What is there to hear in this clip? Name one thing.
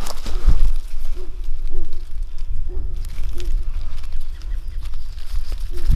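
A hand rustles through dry leaves.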